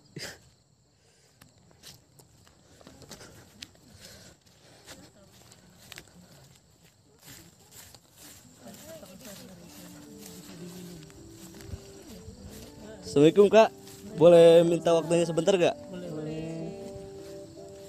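Footsteps crunch on the forest floor.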